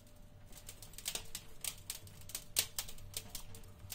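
Fingers tap on a hard surface close by.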